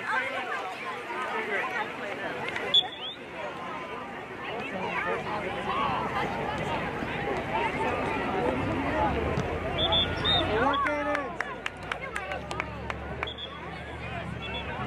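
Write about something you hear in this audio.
Children and adults shout and call out across an open field outdoors.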